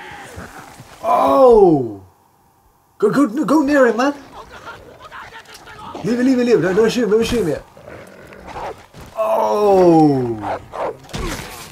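A wolf snarls and yelps.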